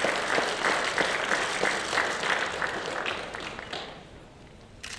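A crowd applauds loudly in a large hall.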